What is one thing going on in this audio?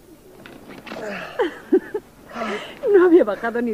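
A young man pants and groans close by.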